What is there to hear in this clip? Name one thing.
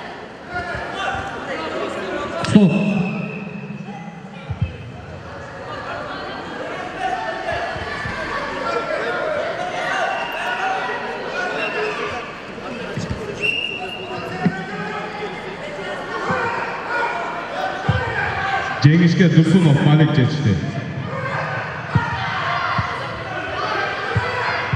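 Voices of men and boys chatter and call out in a large echoing hall.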